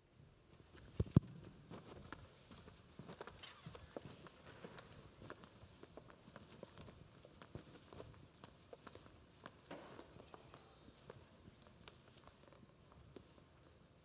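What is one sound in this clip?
Footsteps thud on a wooden stage in a large echoing hall.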